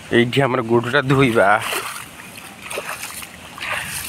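Bare feet splash through shallow water on wet ground.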